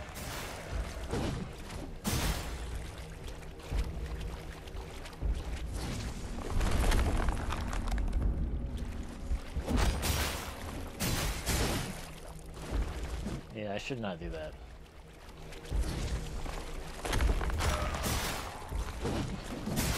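A heavy creature thuds and rumbles as it lunges.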